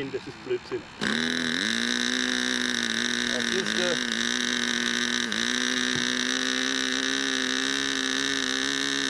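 A small model aircraft engine starts and buzzes loudly and steadily.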